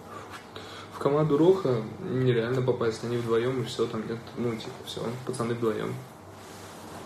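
A young man speaks with animation close to a phone microphone.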